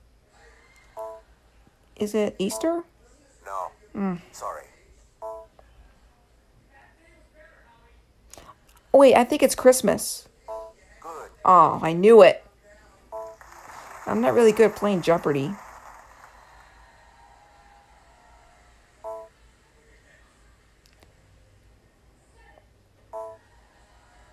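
A handheld game console plays short electronic beeps.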